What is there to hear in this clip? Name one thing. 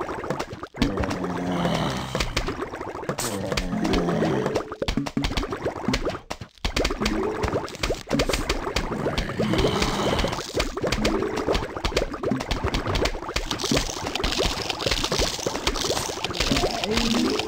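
Plants fire peas with quick popping shots.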